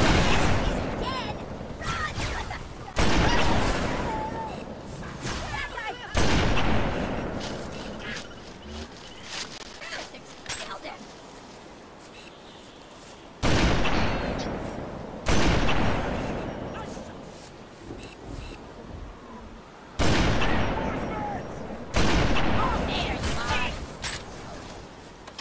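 Sniper rifle shots boom loudly and echo away, one after another.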